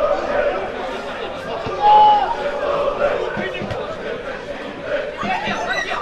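Players shout to each other across an open outdoor field.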